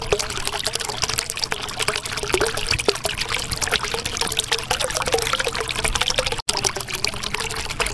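Bubbles gurgle and pop steadily underwater.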